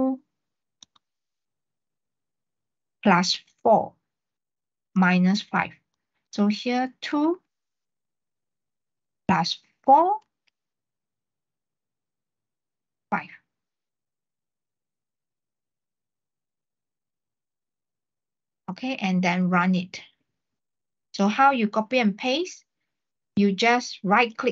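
A young man talks calmly in short bursts over an online call.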